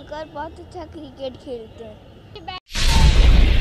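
A young boy speaks into a microphone up close.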